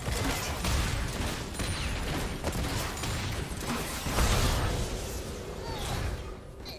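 Magic blasts whoosh and crackle in a hectic fight.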